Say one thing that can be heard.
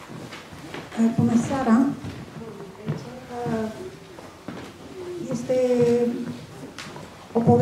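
A man speaks calmly in a room.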